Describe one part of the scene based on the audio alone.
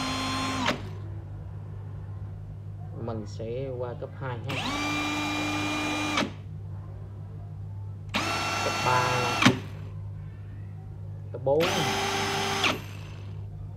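A cordless drill whirs in short bursts, spinning up and winding down.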